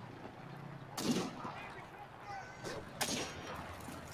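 A rifle fires loud, sharp shots close by.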